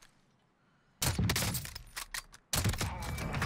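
A sniper rifle fires a loud shot.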